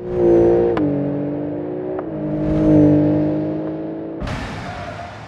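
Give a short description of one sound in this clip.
A sports car engine revs and roars as it speeds away.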